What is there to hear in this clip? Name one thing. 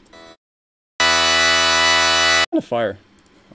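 A sustained synthesizer chord sounds.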